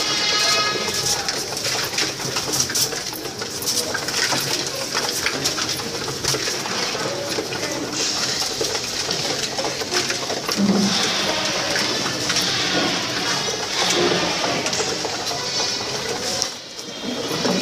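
Pigeon wings flap and clatter in short bursts.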